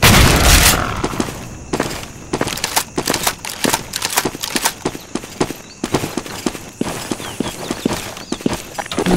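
Shells click into a shotgun as it is reloaded.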